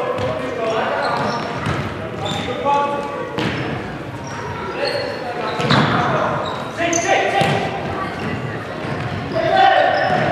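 Shoes squeak sharply on a hard indoor court.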